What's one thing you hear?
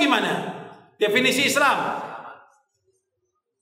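An elderly man preaches with emphasis into a microphone, his voice ringing out through loudspeakers.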